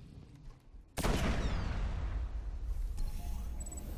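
An explosion booms with a deep rumble.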